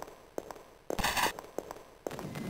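Gunshots ring out in a game.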